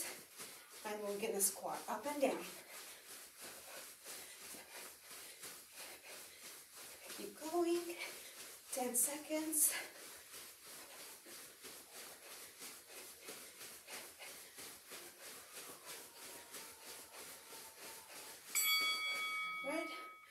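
Feet thump rhythmically on a carpeted floor as a person jumps in place.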